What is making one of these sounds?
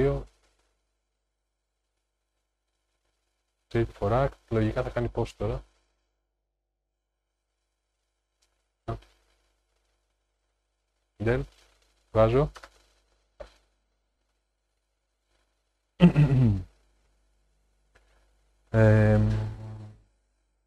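A middle-aged man talks calmly into a close microphone, in short bursts with pauses.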